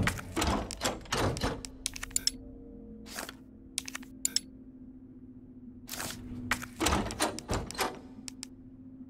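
Short menu clicks sound one after another.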